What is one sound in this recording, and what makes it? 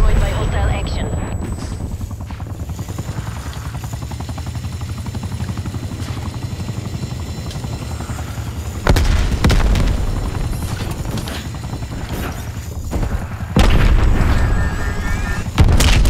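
A small remote-control car's motor whirs as it drives along.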